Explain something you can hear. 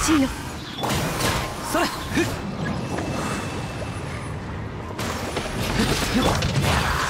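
Magical attacks whoosh and crackle in bursts.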